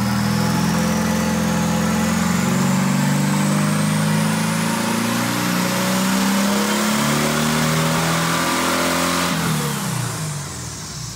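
A car engine revs hard, then drops off.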